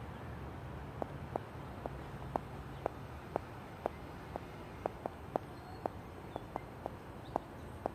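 Footsteps tap at an even pace on pavement.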